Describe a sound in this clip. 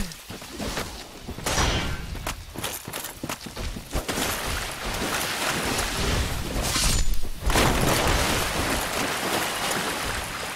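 Swords swing and clash with sharp metallic hits.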